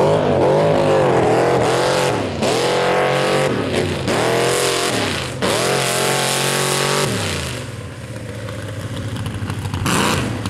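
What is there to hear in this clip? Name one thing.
Big tyres churn and spray through mud.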